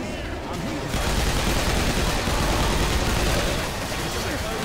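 Pistols fire rapidly in loud bursts.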